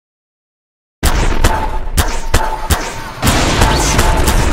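A gun zaps and clicks rapidly.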